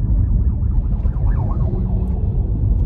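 A young woman sings softly close by.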